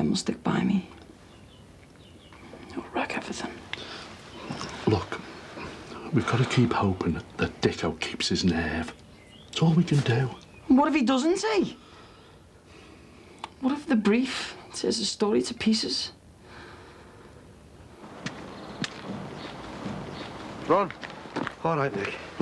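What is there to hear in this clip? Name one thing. A young man answers quietly, close by.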